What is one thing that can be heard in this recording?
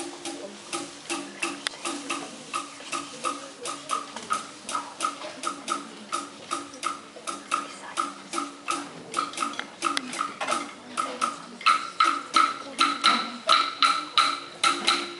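A group of drummers beats a steady, lively rhythm on hand drums in a large echoing hall.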